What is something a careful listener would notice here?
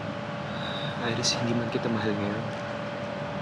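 A young man speaks briefly in a calm, low voice close by.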